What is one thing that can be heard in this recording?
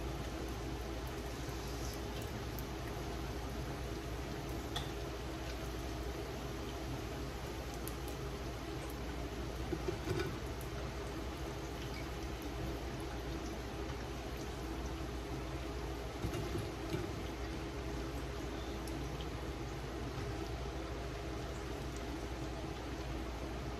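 Plantain slices sizzle as they fry in hot oil in a pan.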